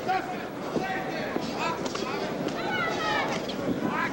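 Gloves thud as boxers land punches.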